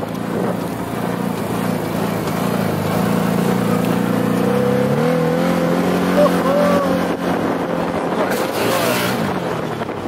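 A small engine hums steadily, then revs higher as a buggy drives along.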